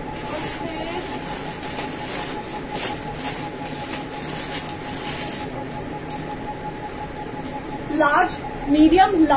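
Fabric rustles as clothes are handled.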